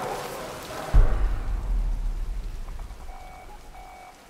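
Thunder booms loudly and rumbles away.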